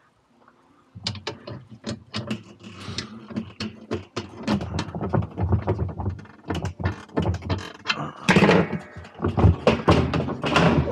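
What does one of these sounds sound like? A wooden board knocks and scrapes against a metal drum.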